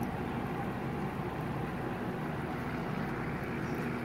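Air bubbles gurgle steadily in shallow water.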